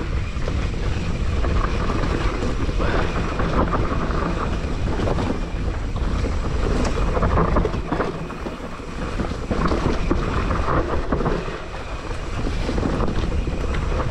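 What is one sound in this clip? Wind rumbles loudly against a microphone.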